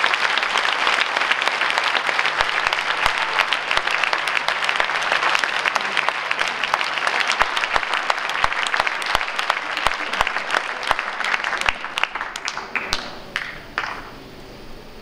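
An audience claps loudly in a large hall, then the applause dies away.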